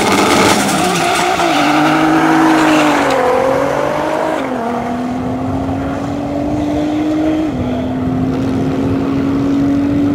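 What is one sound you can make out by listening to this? A car engine roars through rising gear changes as it speeds away.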